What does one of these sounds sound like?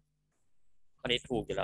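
A young woman speaks through an online call.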